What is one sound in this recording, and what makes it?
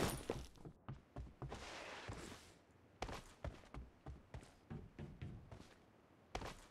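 Footsteps thud quickly on wooden boards and gravel.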